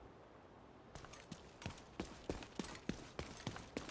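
Heavy footsteps run quickly on pavement.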